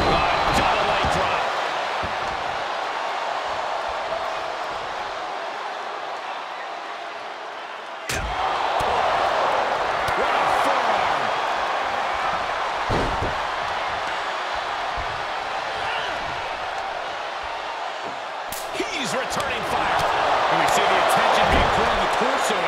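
Heavy thuds of bodies hitting the mat ring out now and then.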